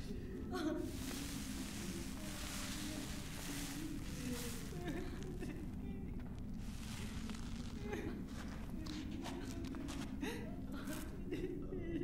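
Cloth rustles as a man handles a wrapped body.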